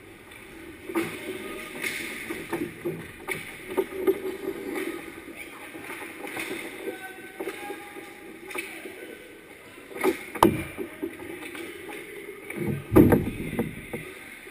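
Hockey sticks clack and slap against a puck and each other in an echoing rink.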